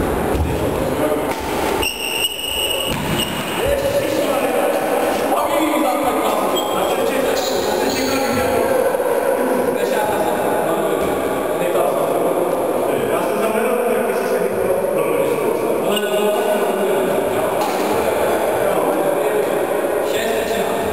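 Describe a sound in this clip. Men talk in a large echoing hall.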